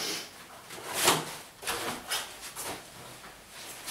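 A stepladder clatters as it is moved across the floor.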